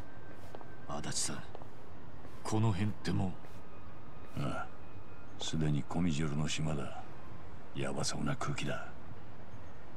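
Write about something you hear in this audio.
A man speaks in a low, serious voice.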